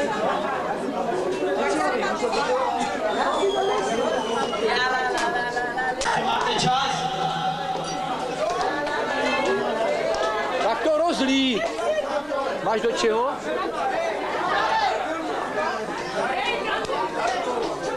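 A crowd of men and women chatter and laugh close by.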